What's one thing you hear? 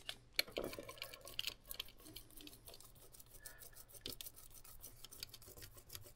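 A small mallet taps lightly on metal.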